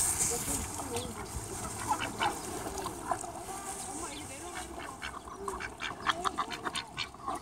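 Ducks paddle and splash softly in shallow water.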